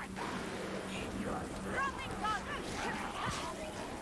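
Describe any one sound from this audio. A blade swings and hacks into flesh.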